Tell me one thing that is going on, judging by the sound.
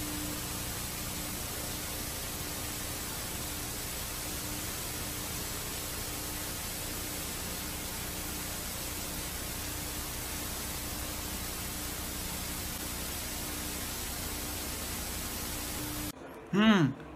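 A television hisses with loud, steady static.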